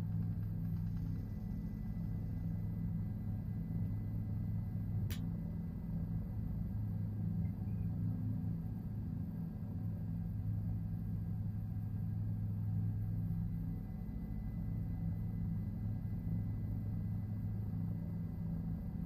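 A helicopter engine and rotor drone steadily and low.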